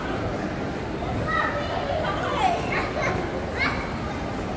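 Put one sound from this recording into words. A group of young men talk casually close by.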